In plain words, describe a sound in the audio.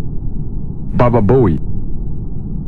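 A soft electronic whoosh sounds once.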